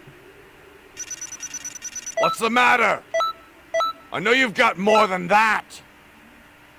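Game menu chimes and blips sound.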